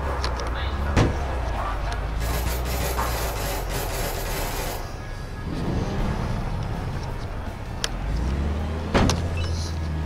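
Metal crunches as vehicles collide.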